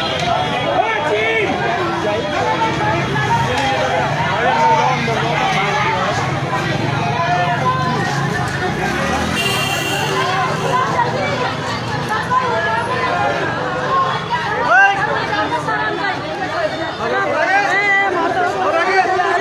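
A crowd of men shout and talk excitedly nearby.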